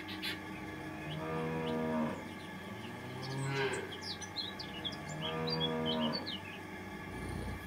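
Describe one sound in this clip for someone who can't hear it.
A cow moos loudly in long, low calls.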